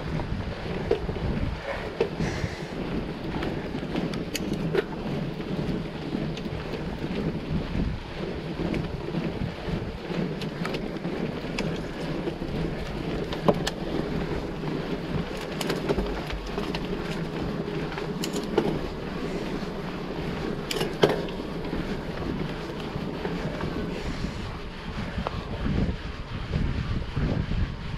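Wind rushes past a microphone.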